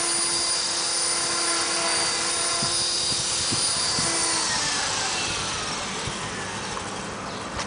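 A toy helicopter's motor whines loudly and then winds down.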